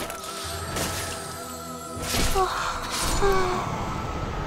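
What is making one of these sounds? Sword blows clash and strike in quick hits.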